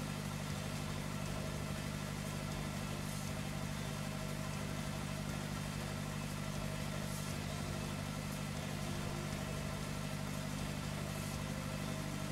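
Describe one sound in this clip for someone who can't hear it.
A seed drill rattles over the soil behind a tractor.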